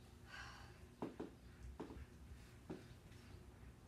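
Footsteps thud on a carpeted floor.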